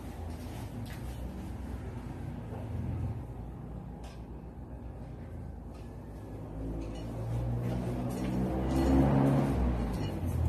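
Bare footsteps pad softly across a floor.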